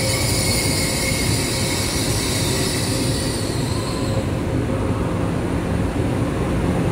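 A train rolls slowly past with a steady low rumble.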